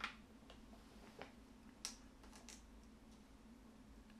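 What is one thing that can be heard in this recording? Plastic game pieces click softly on a table.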